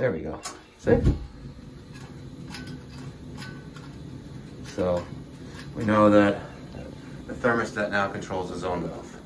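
A furnace starts up with a thump and hums steadily.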